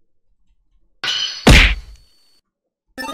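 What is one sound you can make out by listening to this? A retro video game plays a bite attack sound effect.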